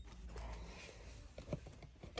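A hand brushes against a cereal box.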